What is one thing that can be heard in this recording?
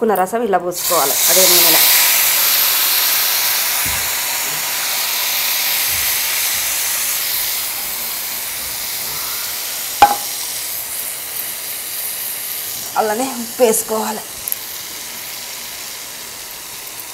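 Water hisses and sizzles loudly as it hits hot oil, then settles into a steady bubbling boil.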